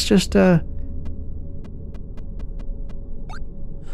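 Short electronic clicks tick in quick succession.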